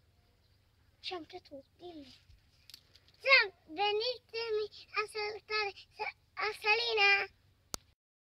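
A young child speaks and sings out in a high voice, close by.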